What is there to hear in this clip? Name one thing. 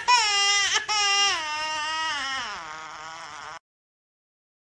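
A baby wails loudly.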